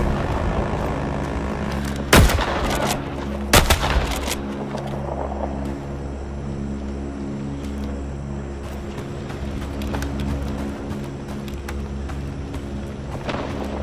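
A fire crackles and roars nearby.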